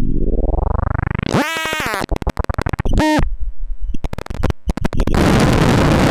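A modular synthesizer plays sweeping, glitching electronic tones.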